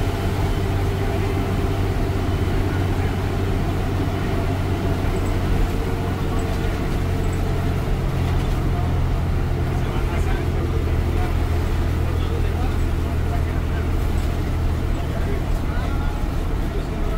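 Loose panels rattle as the bus drives over the road.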